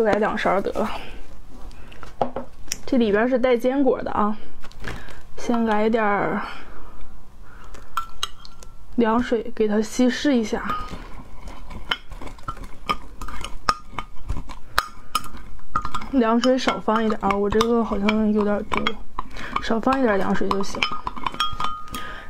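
A metal spoon clinks and scrapes against a glass cup.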